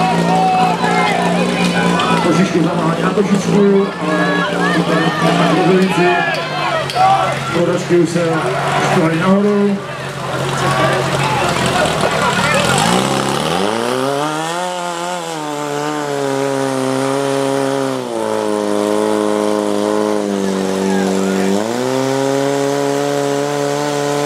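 A pump engine drones steadily, then revs up and down loudly.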